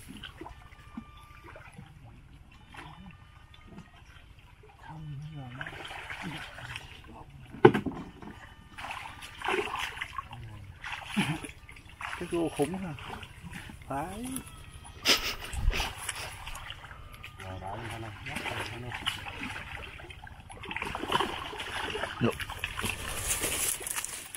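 Water splashes as men wade through a muddy stream.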